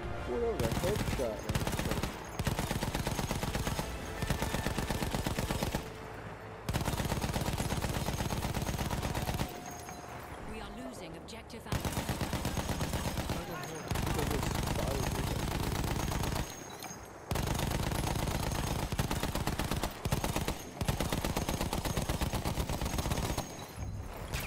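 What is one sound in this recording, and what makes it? A heavy machine gun fires in long, rapid bursts.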